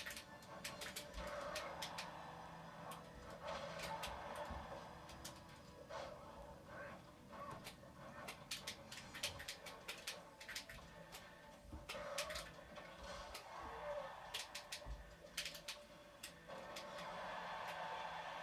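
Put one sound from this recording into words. Music from a video game plays through a television speaker.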